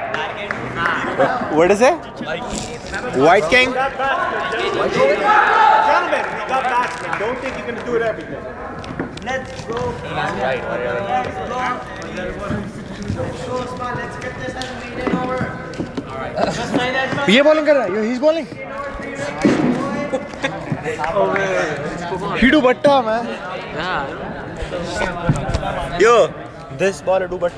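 Young men talk and call out close by, echoing in a large hall.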